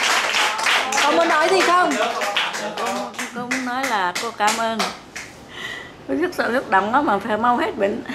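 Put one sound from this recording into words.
An elderly woman speaks close by, calmly.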